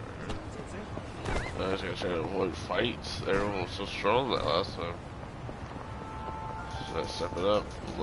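Footsteps slap quickly on pavement.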